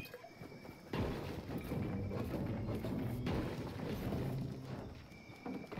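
A pickaxe strikes rock with repeated knocks.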